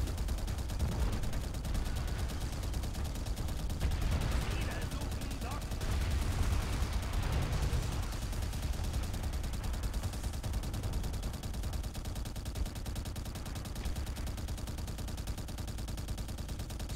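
A mounted heavy machine gun fires in rapid bursts.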